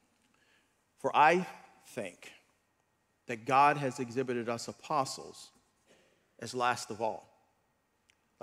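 A middle-aged man preaches emphatically into a microphone, pausing between phrases.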